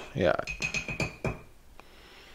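A metal spoon clinks against a ceramic mug.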